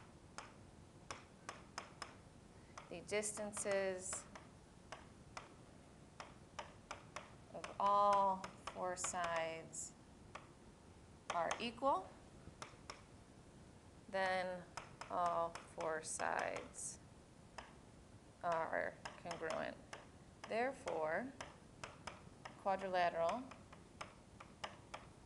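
A stylus taps and scratches on a tablet.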